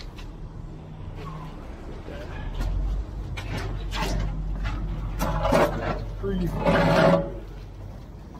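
A rake scrapes through wet concrete.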